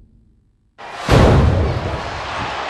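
A body slams hard onto a wrestling mat.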